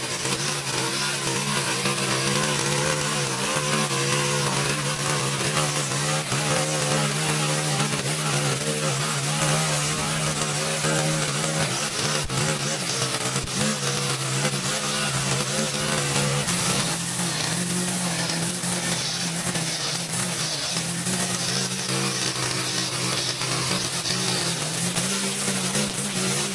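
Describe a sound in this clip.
A string trimmer's line whirs and swishes through grass.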